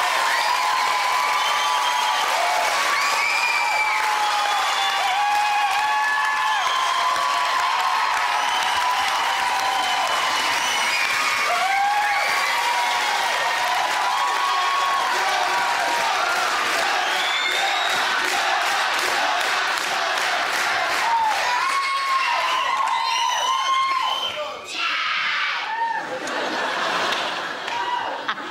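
A large crowd cheers and whistles loudly in an echoing hall.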